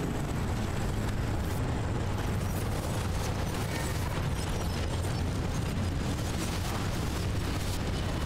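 Heavy rain and wind roar against the car.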